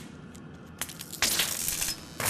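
Switches click on an electrical panel.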